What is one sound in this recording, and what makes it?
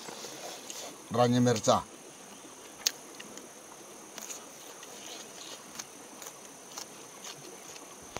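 A man chews and smacks his lips.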